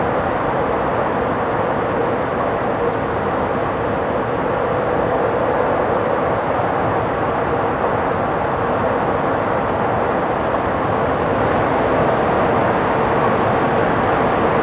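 A car drives fast through a tunnel with a steady roar of engine and tyres.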